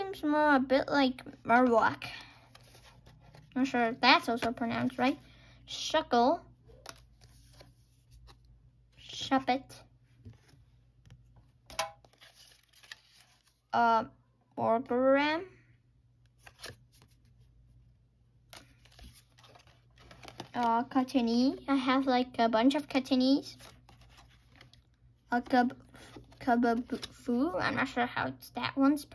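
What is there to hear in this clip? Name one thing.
Trading cards rustle and slide softly as they are flipped through by hand.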